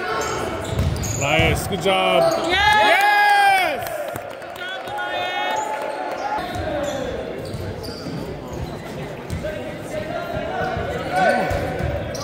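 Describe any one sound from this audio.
A volleyball thumps sharply off hands and arms.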